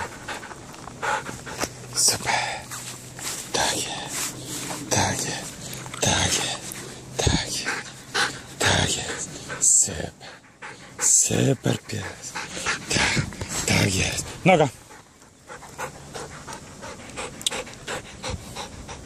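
A dog growls and snarls playfully.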